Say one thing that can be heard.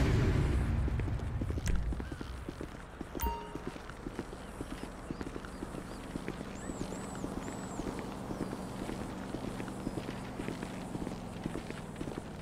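Footsteps clang quickly on a metal roof.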